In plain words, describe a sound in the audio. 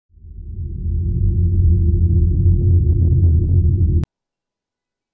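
A deep electric rumble swells and then cuts off abruptly.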